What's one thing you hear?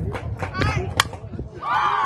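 A bat strikes a softball with a sharp crack.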